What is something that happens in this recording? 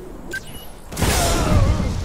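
Gunfire bursts out loudly.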